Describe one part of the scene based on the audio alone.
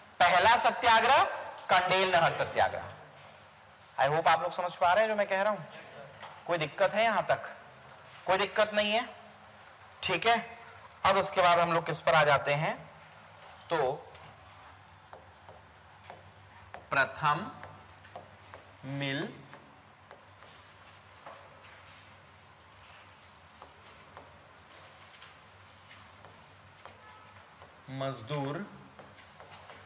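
A man lectures calmly into a close microphone, in bursts with pauses.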